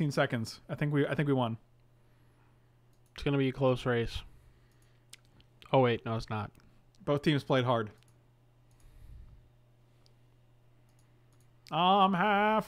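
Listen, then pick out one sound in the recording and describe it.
A man talks casually into a microphone, in short bursts with pauses.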